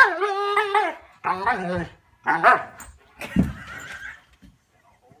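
A dog howls and yowls close by in long, wavering cries.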